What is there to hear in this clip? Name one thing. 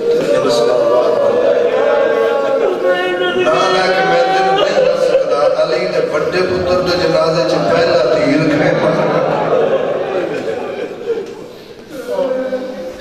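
A man speaks passionately into a microphone, his voice loud and echoing through loudspeakers.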